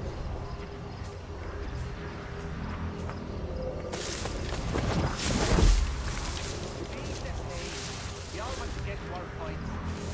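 Footsteps rustle through tall grass and leafy plants.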